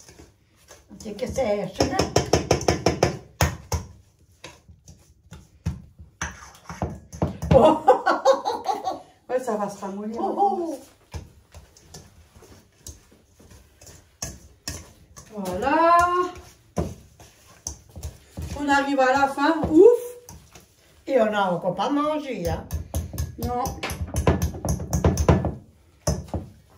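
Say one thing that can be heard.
A whisk beats rapidly against a metal bowl.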